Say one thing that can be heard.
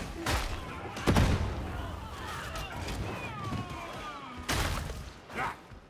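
Loud explosions boom.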